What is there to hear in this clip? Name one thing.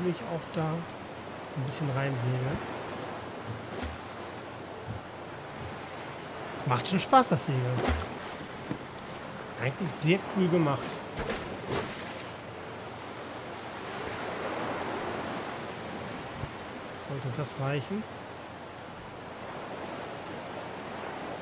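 Waves splash softly against a small wooden boat.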